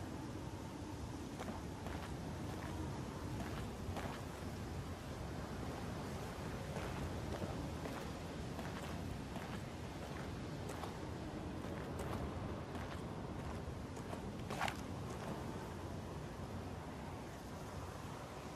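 Footsteps crunch over grass and loose ground.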